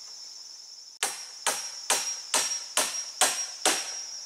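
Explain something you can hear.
A mallet strikes a wooden stake in steady, sharp blows.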